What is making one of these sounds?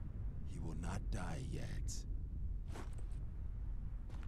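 A woman speaks softly and reassuringly.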